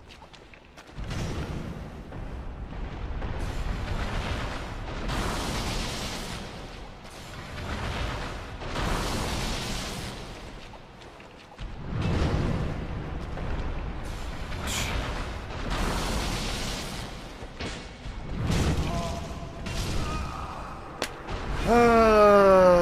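Heavy armoured footsteps thud and clank in an echoing space.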